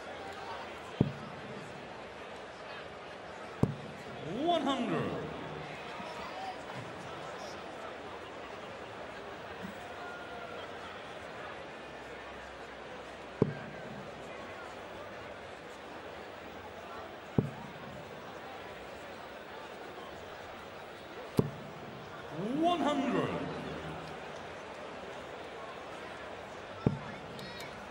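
Darts thud sharply into a dartboard, one at a time.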